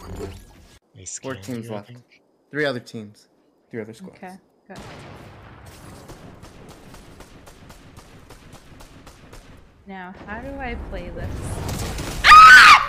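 A young woman talks into a close microphone with animation.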